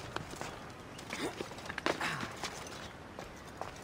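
Hands and feet scuff and tap on rock during a climb.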